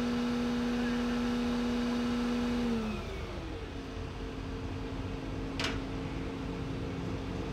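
A diesel tracked excavator engine runs high, then drops to a lower hum.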